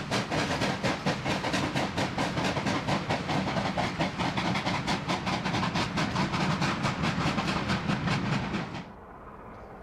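A steam locomotive chuffs hard and fast as it passes close by.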